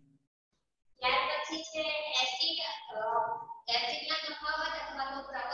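A woman speaks clearly and steadily, as if teaching.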